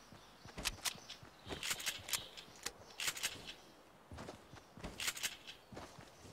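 Footsteps run quickly over grass and pavement.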